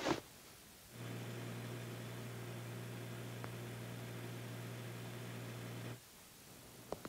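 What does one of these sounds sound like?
Computer machines hum steadily.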